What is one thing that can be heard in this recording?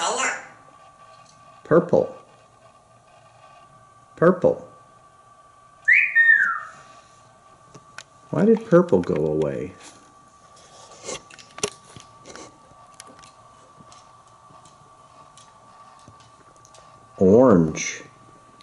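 A parrot talks in short bursts nearby.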